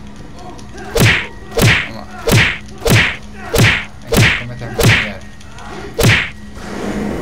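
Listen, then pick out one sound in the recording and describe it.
Heavy blows land hard in quick succession.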